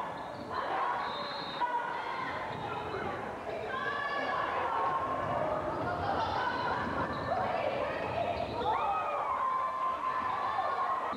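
A crowd of spectators shouts and cheers in a large echoing gym.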